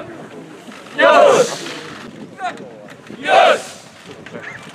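A group of young men cheer loudly in unison outdoors.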